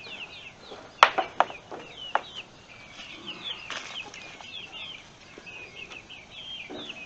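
Wooden boards knock and clatter against each other.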